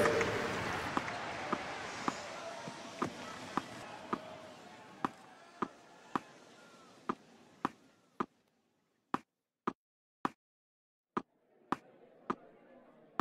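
A tennis ball bounces repeatedly on a hard court.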